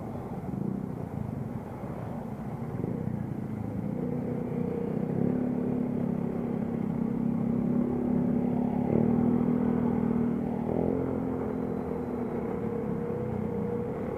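A motorcycle engine hums steadily close by and rises and falls in pitch as it speeds up and slows down.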